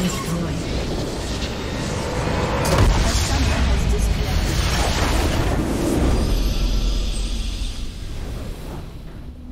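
Game combat effects clash and burst.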